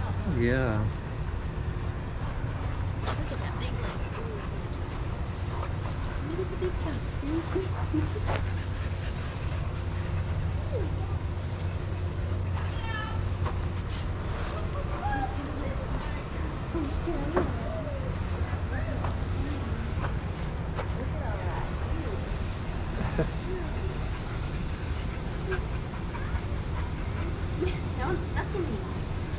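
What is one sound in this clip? Dogs yip and whine nearby.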